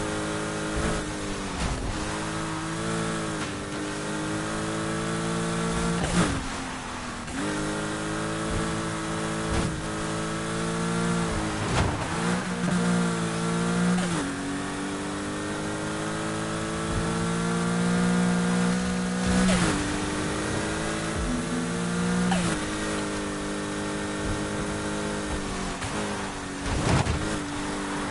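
A racing car engine roars at high revs, rising in pitch and dropping sharply at each gear change.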